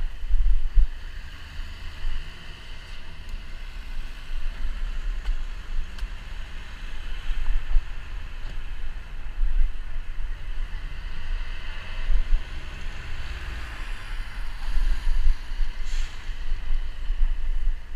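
A bus engine drones close ahead.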